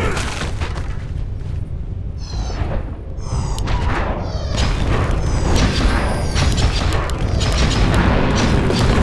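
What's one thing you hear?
Weapons clash and strike rapidly in a fight.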